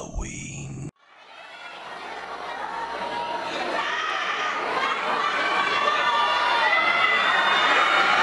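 A group of young men chatter and call out together.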